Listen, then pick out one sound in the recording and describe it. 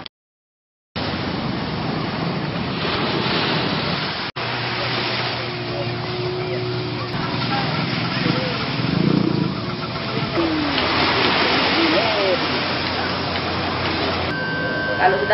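Small waves lap at the shore.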